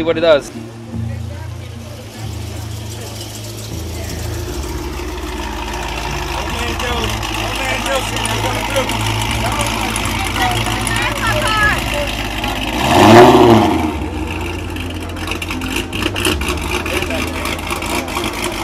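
A car engine idles with a deep, steady rumble.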